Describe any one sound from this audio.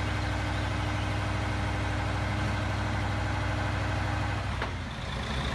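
A crane truck's diesel engine rumbles steadily nearby.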